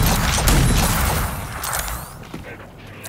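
A creature's nest bursts apart with a loud, crackling blast.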